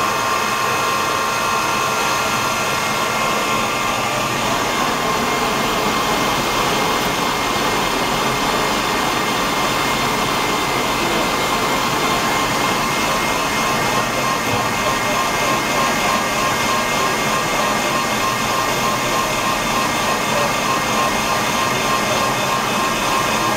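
A lathe spindle whirs steadily as it spins.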